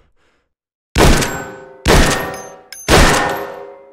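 A shotgun fires loud blasts that echo in a large hall.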